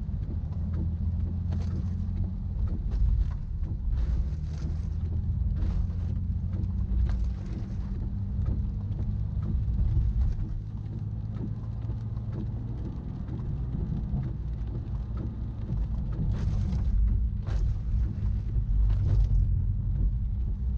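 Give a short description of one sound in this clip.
Rain patters on the windscreen.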